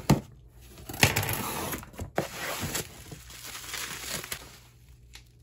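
Bubble wrap crinkles and rustles.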